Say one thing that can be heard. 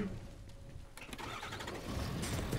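A large truck engine rumbles.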